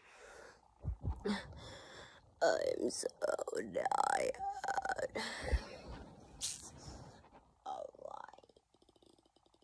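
A young boy talks with animation close to the microphone.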